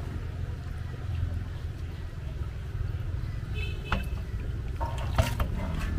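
Water splashes as fish are poured out of a basin.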